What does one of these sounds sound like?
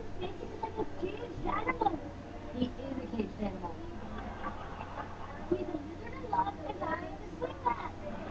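A boy talks loudly, heard through a television speaker.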